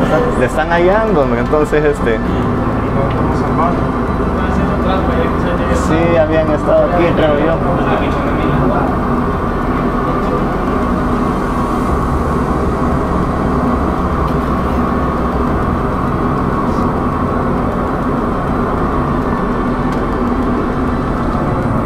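A steady aircraft engine drone hums throughout.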